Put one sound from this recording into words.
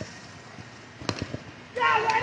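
A bat hits a ball with a sharp crack.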